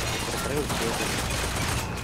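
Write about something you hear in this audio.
A gun fires shots.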